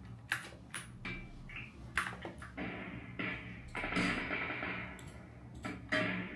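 Gunshots crack from a video game through speakers.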